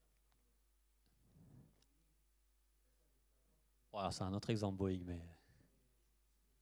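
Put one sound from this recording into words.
A man speaks through a microphone in a large echoing hall.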